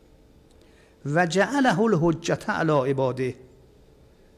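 An elderly man reads aloud slowly into a microphone.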